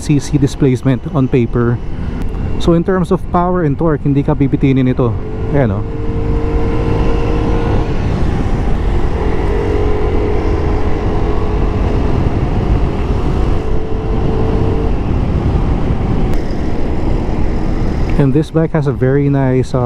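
Wind rushes past a moving scooter.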